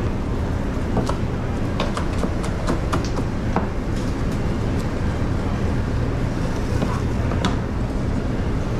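A knife taps rapidly on a cutting board, chopping food.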